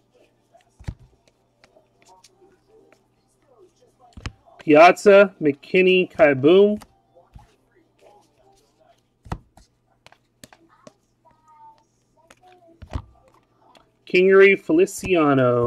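Stiff cards slide and flick softly against each other as they are sorted by hand.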